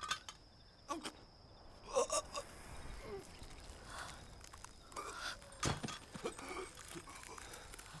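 A man groans and coughs in pain.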